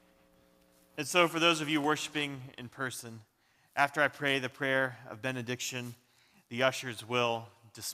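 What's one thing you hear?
A man speaks calmly and steadily into a microphone.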